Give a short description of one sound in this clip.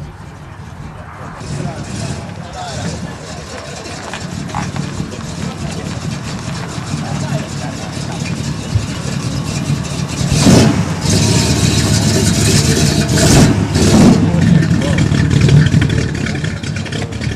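A muscle car's engine rumbles deeply and revs loudly as it pulls away.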